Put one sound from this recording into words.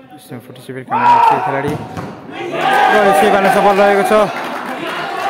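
A crowd of spectators shouts and cheers loudly.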